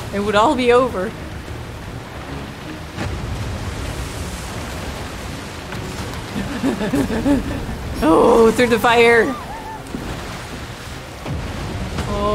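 Water sprays and splashes behind a jet ski.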